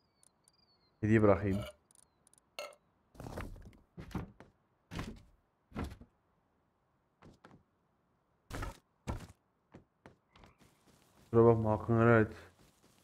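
A man talks with animation into a headset microphone, close by.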